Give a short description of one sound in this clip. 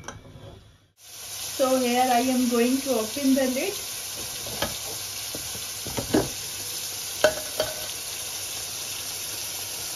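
Steam hisses steadily from a pressure cooker.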